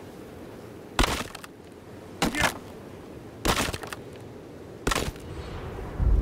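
An axe chops and splinters wooden planks with sharp knocks.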